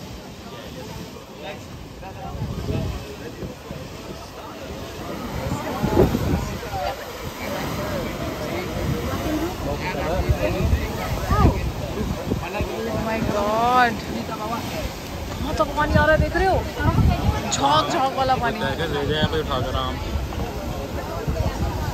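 Waves crash and surge against rocks, roaring loudly.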